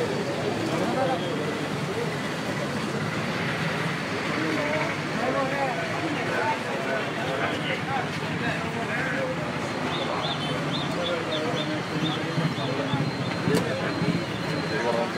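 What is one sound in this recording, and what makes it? A man speaks loudly nearby.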